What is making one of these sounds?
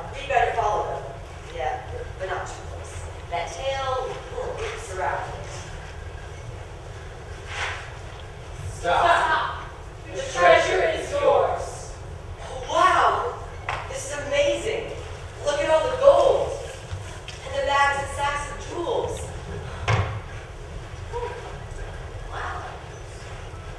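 A young man speaks with animation in a large hall.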